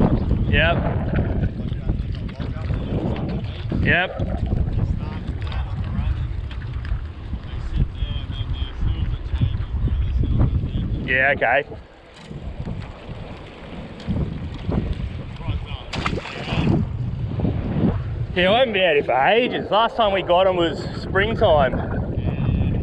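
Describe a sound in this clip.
Water laps against a boat hull.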